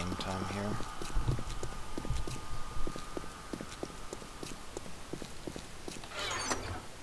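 Footsteps crunch steadily on loose dirt.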